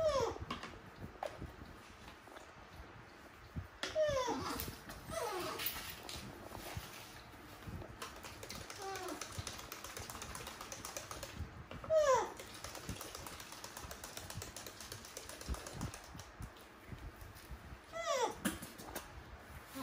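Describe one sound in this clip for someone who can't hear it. A baby monkey gives short, high squeaks that slide downward.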